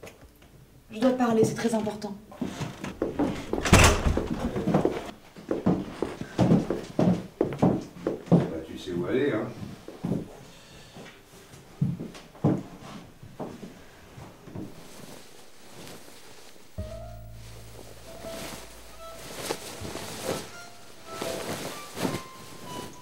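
A man speaks in a low, calm voice nearby.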